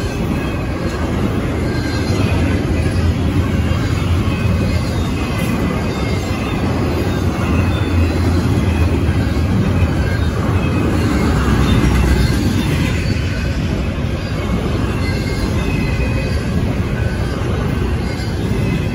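A long freight train rumbles and clatters past close by.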